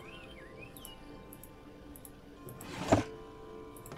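A wooden drawer slides shut with a soft knock.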